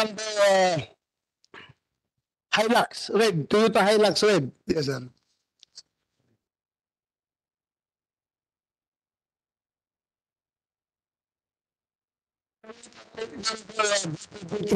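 A man speaks into a microphone in a calm, formal tone.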